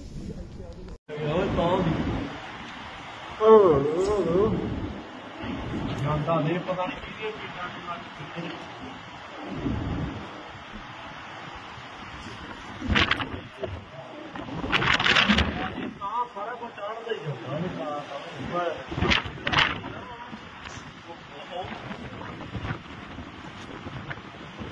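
Strong wind blows outdoors.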